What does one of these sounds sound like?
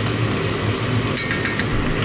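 A wooden spoon stirs a thick stew in a pot.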